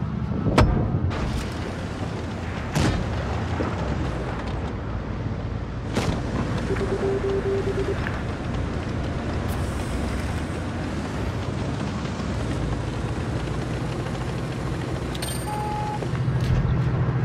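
Tank engines rumble and clatter steadily.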